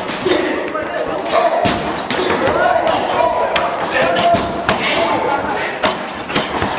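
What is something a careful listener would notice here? Fists and shins smack sharply against padded mitts.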